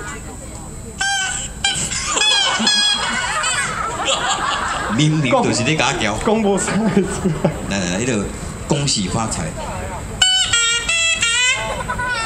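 Harmonicas play short high melodic phrases.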